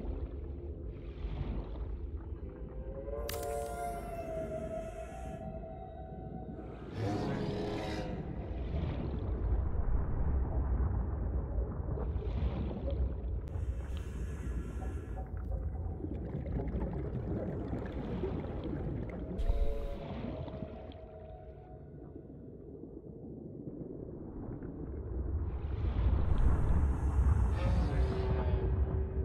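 A low underwater rumble drones steadily.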